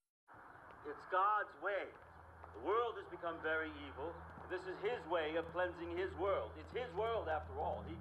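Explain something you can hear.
An elderly man speaks calmly through a television speaker.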